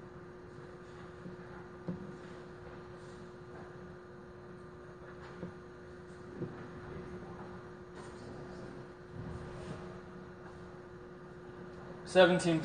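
A machine hums steadily.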